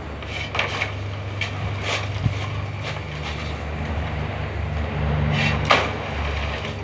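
A shovel scrapes and knocks against concrete and gravel.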